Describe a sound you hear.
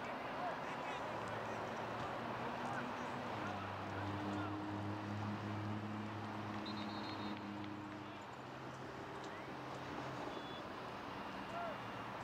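Distant players shout across the field.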